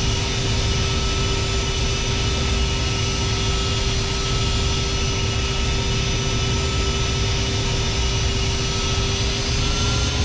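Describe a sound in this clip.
Jet engines roar and whine steadily.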